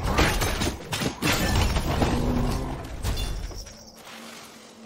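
Heavy blows crash and thud in a loud fight.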